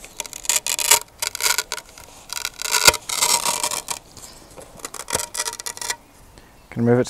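Velcro rips and plastic rustles up close.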